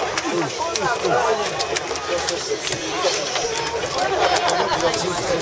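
A crowd of young men chants loudly close by, echoing around an open-air stadium.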